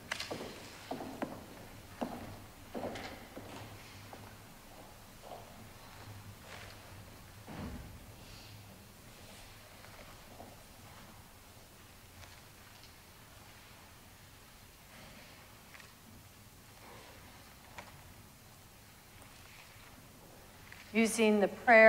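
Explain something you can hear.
A man speaks calmly over a microphone in a large echoing hall.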